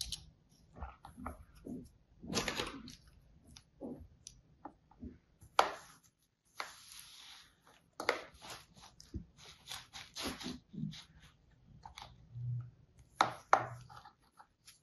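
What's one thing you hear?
Soft sand crumbles and rustles as a plastic cutter presses into it.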